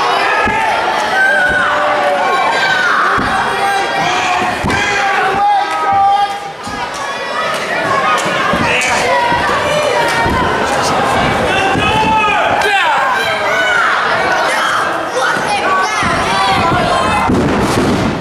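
A crowd cheers, shouts and chants in a large echoing hall.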